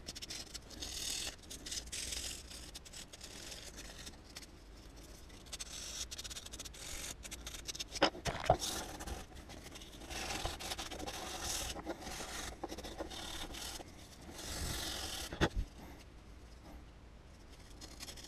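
Wooden pieces knock and click together in someone's hands.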